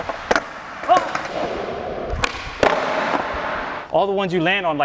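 Skateboard wheels roll and rumble on a smooth concrete floor.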